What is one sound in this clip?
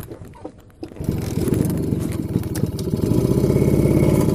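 A motorcycle engine starts up and idles with a steady putter.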